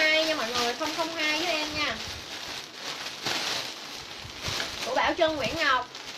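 Plastic wrapping crinkles as it is handled.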